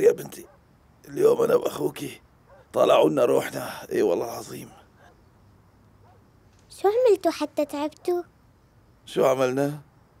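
A middle-aged man speaks nearby with feeling.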